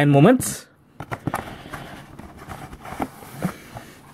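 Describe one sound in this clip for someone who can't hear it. A trading card pack crinkles as fingers handle it close by.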